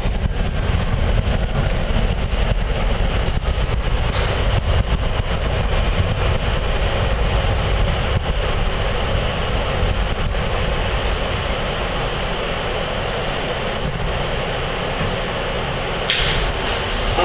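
A subway train rumbles and rattles loudly while riding.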